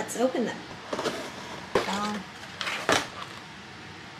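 A cardboard box lid is lifted open.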